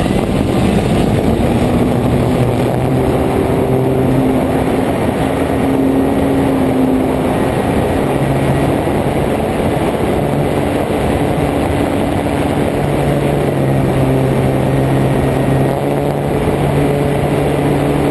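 Drone propellers whir loudly and steadily, shifting in pitch as it climbs.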